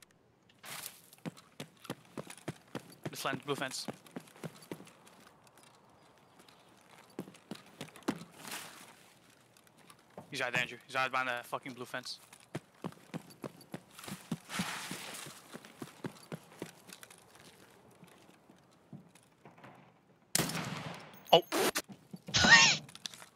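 Footsteps crunch on gravel and concrete at a steady walking pace.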